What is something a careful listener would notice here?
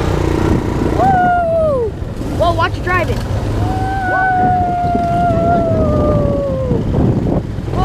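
A young boy calls out loudly in long drawn-out cries.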